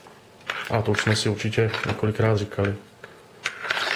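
A knife slides into a hard plastic sheath with a click.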